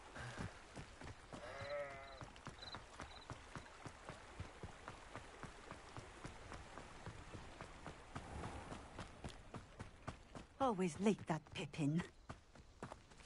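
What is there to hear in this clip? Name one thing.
Footsteps run over hard ground at a quick, even pace.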